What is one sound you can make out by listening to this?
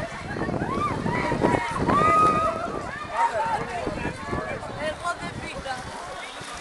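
A crowd of young people shout and shriek outdoors.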